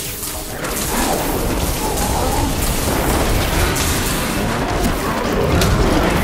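Spells crackle and explode in a fierce game battle.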